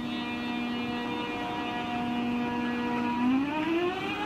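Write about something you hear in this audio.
A high-speed electric train hums steadily while standing.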